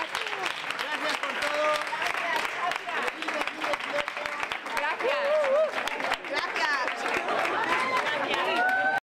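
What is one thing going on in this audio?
Women cheer and shout excitedly.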